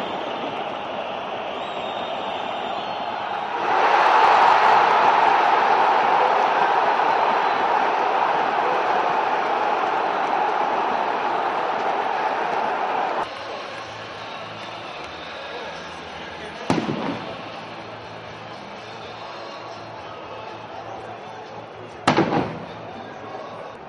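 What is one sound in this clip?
A huge stadium crowd roars and cheers loudly.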